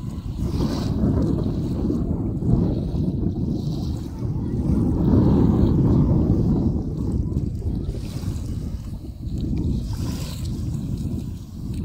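Small waves lap gently on a sandy shore, outdoors in wind.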